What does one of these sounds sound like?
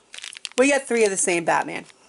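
A plastic bag crinkles close by.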